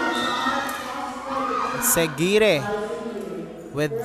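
Young women shout and cheer together.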